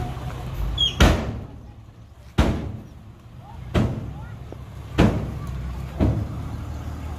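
A heavy metal tailgate bangs shut several times.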